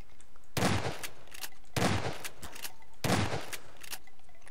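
A shotgun fires loud blasts that echo in a hard room.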